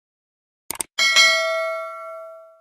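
A bell chimes and rings out slowly.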